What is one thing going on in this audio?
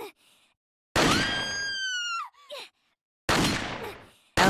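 A pistol fires two loud shots that ring out in an echoing hall.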